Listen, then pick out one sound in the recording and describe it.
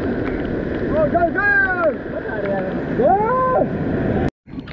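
Young men whoop and shout loudly.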